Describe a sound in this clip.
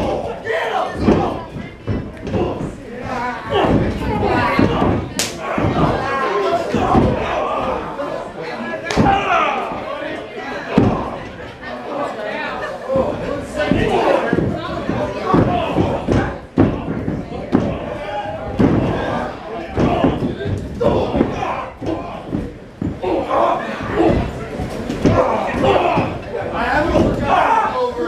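A crowd cheers and shouts loudly close by.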